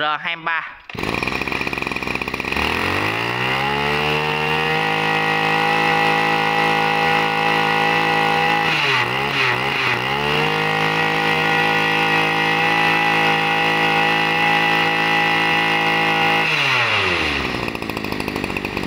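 A small petrol engine starts up and runs at a steady idle.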